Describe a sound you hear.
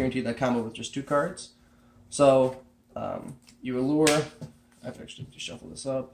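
Cards slap softly onto a mat.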